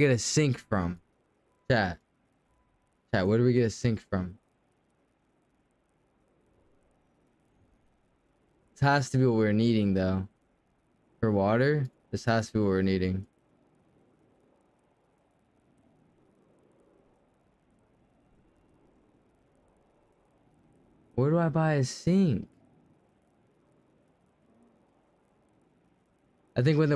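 A man talks casually into a close microphone, in short bursts with pauses.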